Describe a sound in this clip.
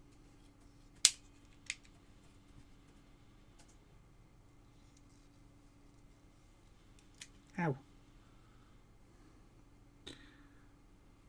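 A plastic tool clicks and taps sharply a few times.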